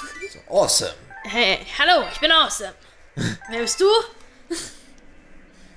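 Bright chiming jingles ring out in quick bursts.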